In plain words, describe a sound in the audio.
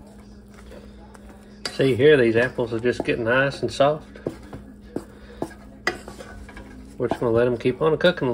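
A wooden spatula scrapes and stirs in a metal pan.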